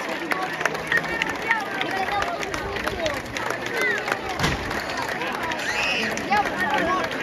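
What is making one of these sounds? Firework fountains crackle and pop with a shower of sparks.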